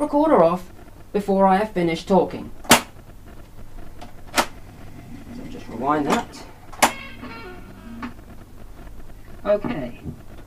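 A voice plays back through a tape recorder's small loudspeaker.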